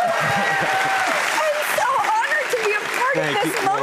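A young woman laughs excitedly.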